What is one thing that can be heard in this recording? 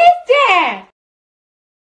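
A cartoon creature squeals in a high, wobbly voice.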